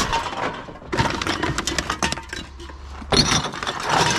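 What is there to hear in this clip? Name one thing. Aluminium cans clatter and rattle together.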